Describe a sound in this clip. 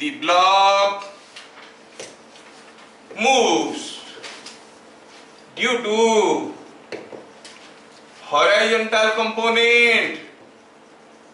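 A man speaks slowly in short phrases, close by.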